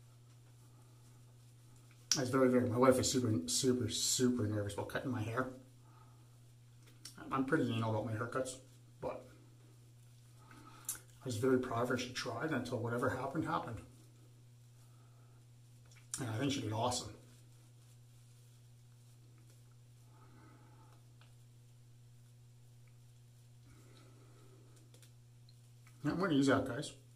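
A shaving brush swishes and lathers against stubble.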